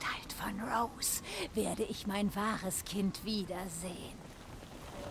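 A woman speaks slowly and eerily, close by.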